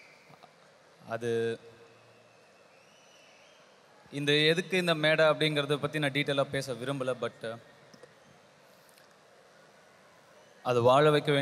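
A young man sings into a microphone over loudspeakers in a large hall.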